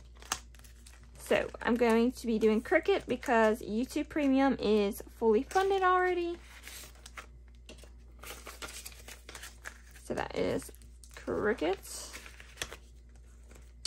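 Paper banknotes crinkle and rustle as they are handled.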